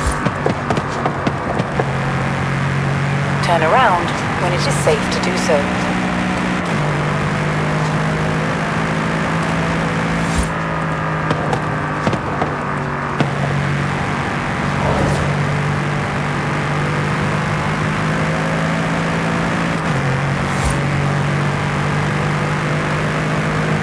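A sports car engine roars steadily at high speed, shifting gears.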